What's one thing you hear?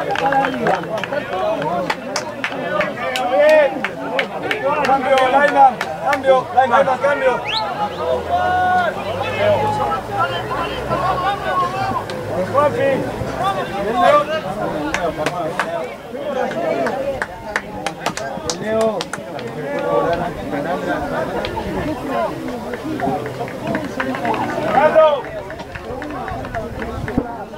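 Rugby players shout and call to each other across an open field.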